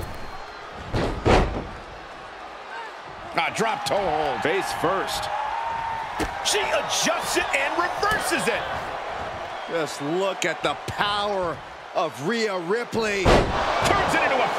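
Bodies slam heavily onto a wrestling ring mat.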